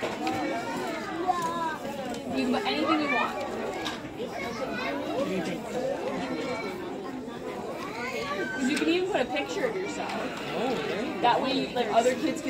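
A young woman speaks calmly and warmly to children nearby.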